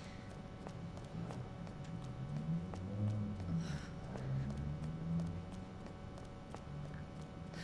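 Footsteps climb stone stairs and walk along a hard floor.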